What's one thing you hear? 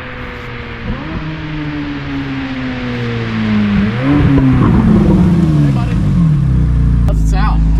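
A sports car engine revs loudly as the car passes by.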